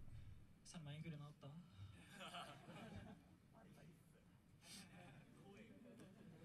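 A young man speaks into a microphone in a large echoing hall.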